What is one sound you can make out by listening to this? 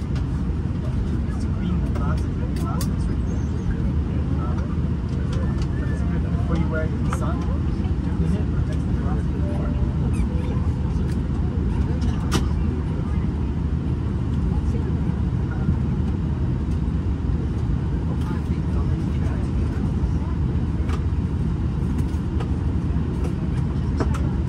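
A jet engine hums and roars steadily, heard from inside an airliner cabin.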